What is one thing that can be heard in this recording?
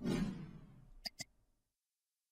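A mouse clicks twice.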